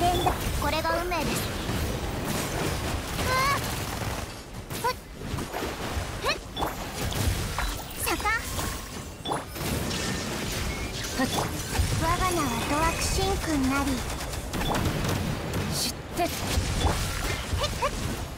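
Magic attacks crackle and burst in quick succession.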